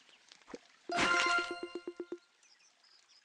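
A bright chime rings out and rings briefly.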